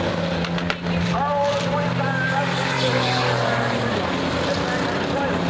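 A crowd of men and women cheers and shouts outdoors.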